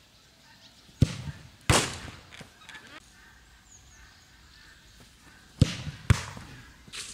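A football is kicked hard with sharp thuds.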